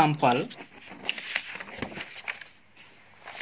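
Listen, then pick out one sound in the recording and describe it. Paper rustles as a page is turned.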